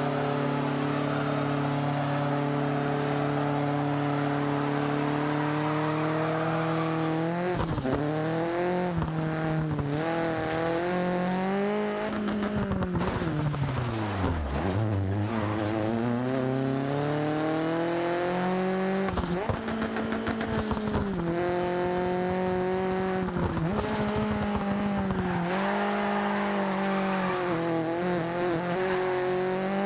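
A rally car engine roars and revs up and down.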